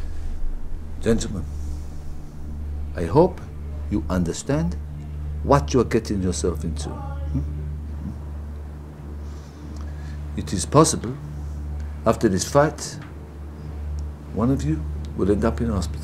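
An older man speaks nearby in a low, calm, menacing voice.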